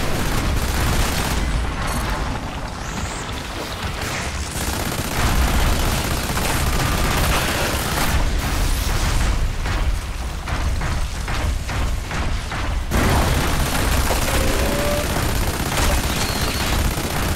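Heavy booming explosions rumble.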